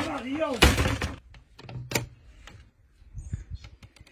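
A wooden shutter knocks as it swings open.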